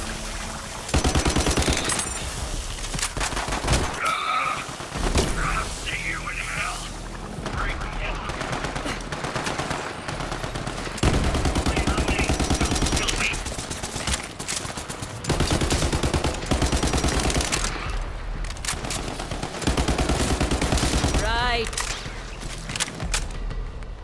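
Rapid gunfire rattles in fast bursts.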